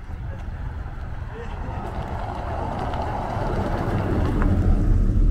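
A car drives past close by, its engine and tyres growing louder.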